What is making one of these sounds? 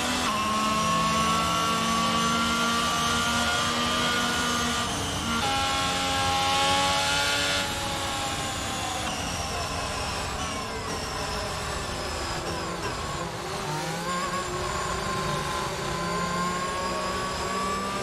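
A racing car engine screams at high revs, shifting gears up and down.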